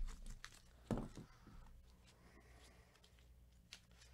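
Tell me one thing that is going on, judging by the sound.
A plastic card case clacks down into a cardboard box.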